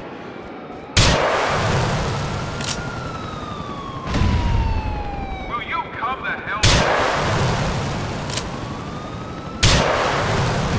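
A rocket launcher fires with a loud, sudden blast.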